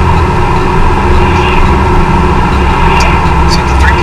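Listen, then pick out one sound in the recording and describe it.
An oncoming vehicle passes by.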